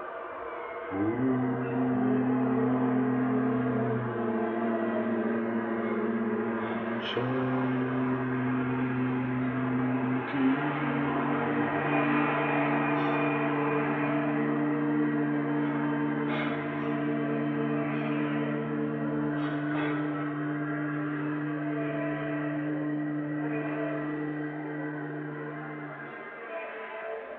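An elderly man chants long, steady held notes close by.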